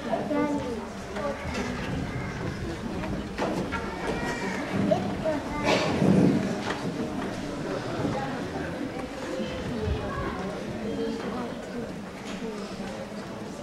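Young girls talk with animation in an echoing hall.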